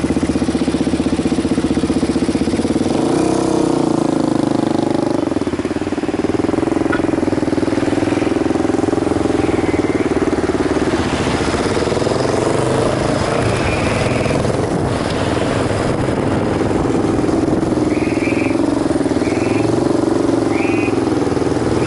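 A motorcycle engine idles and revs up close.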